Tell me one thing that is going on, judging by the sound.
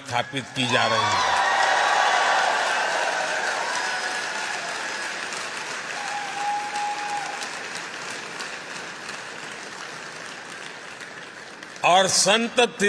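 A large crowd claps and cheers loudly.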